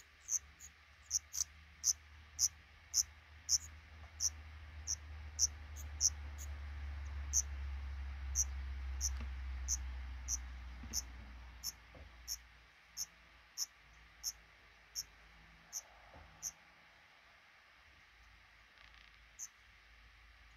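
Baby birds peep in short, high, rapid cheeps close by.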